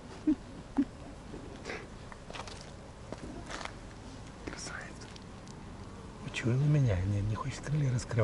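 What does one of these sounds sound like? Footsteps crunch softly on dry fallen leaves.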